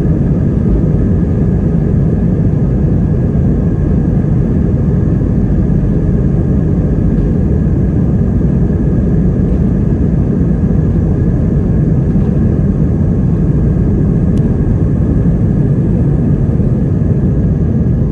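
Wheels rumble over a runway during takeoff.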